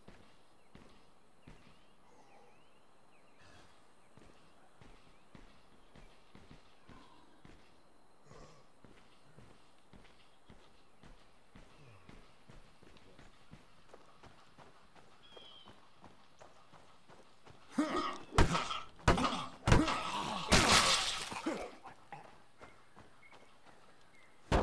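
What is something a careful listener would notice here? Footsteps tap softly on hard ground.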